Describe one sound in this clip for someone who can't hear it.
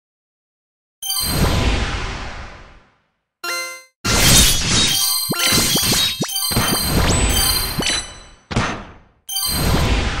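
Blades slash and strike with sharp, ringing clashes.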